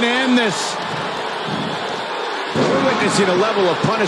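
A body slams onto a wrestling mat with a heavy thud.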